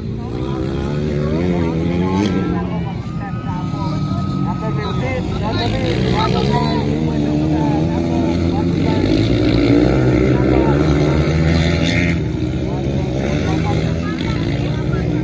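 Several dirt track motorcycles rev and race past on a flat track.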